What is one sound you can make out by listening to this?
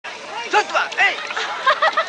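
Women chatter and laugh nearby.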